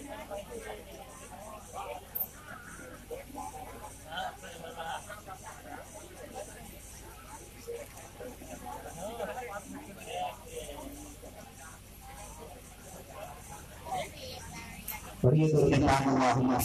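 An elderly man speaks into a microphone, heard through loudspeakers.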